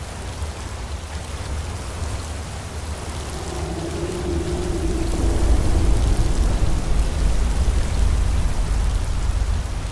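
A stream rushes and splashes over rocks.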